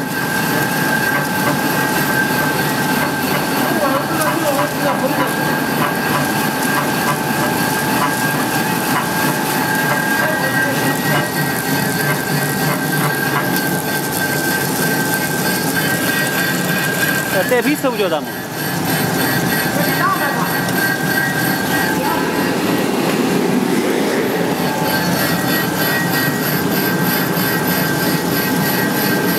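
A machine hums and whirs steadily with a high whine.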